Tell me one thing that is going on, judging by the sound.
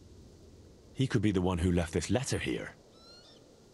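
A young man answers with animation nearby.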